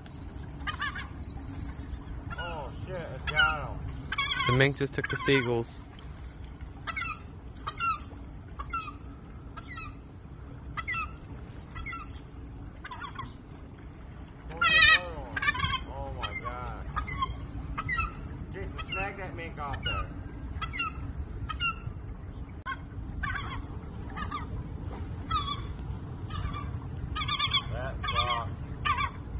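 Water laps gently against a wooden piling.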